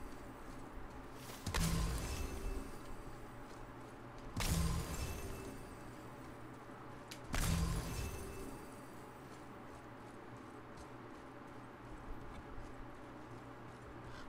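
Footsteps run over grass and ground.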